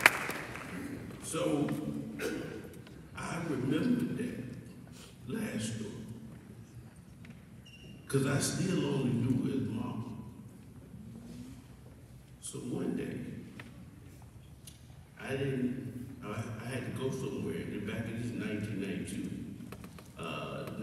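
A man speaks with feeling through a microphone, in pauses, in a large echoing hall.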